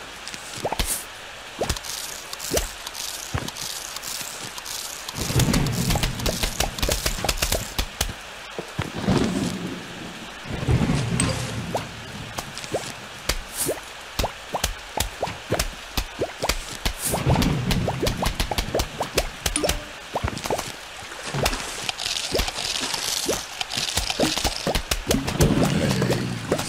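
Short game sound effects click and pop repeatedly.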